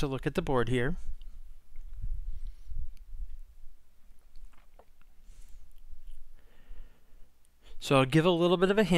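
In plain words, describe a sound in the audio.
A man speaks calmly and closely into a headset microphone.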